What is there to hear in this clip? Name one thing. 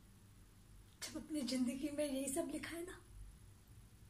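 A woman speaks briefly and softly close by.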